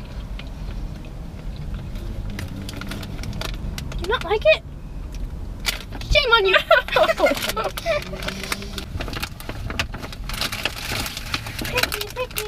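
A snack bag crinkles and rustles.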